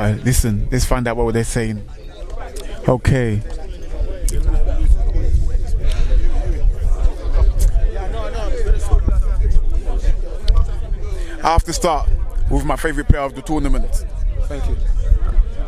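A man talks with animation into a microphone close by.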